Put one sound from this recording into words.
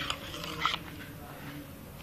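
A spoon stirs liquid in a metal pot.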